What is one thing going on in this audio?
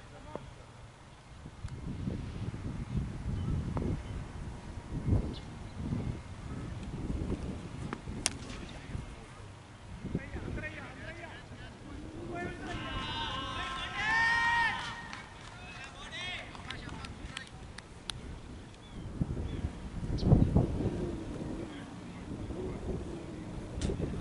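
Wind rumbles outdoors in gusts.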